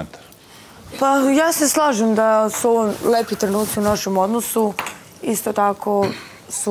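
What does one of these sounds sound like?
A young woman speaks loudly and firmly, close by.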